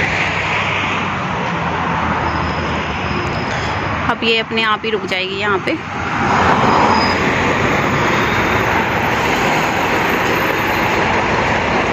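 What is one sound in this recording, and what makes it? A bus engine rumbles as the bus approaches and pulls up close by.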